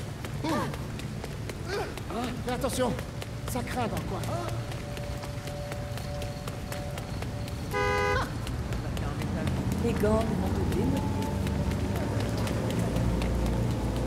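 Quick footsteps slap on wet pavement.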